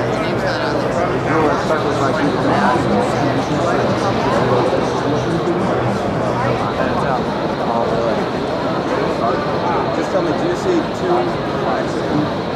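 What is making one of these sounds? Many people chatter at once in the background.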